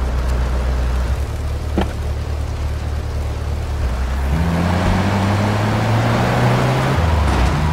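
A van engine hums and revs as it drives off.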